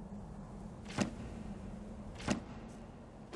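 Sharp menu clicks tick twice.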